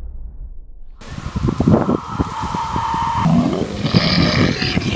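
A beast snarls and growls loudly close by.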